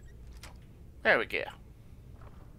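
A lock snaps open with a sharp click.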